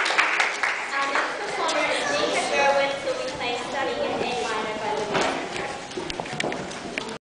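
A woman speaks clearly in an echoing hall.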